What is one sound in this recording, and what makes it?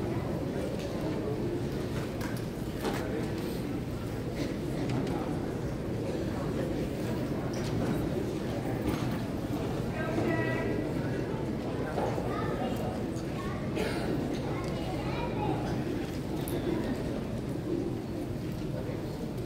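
A children's choir sings in a large echoing hall.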